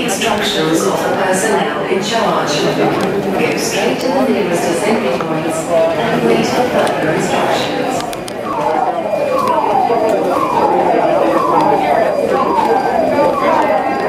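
A crowd of people murmurs and talks in a large echoing hall.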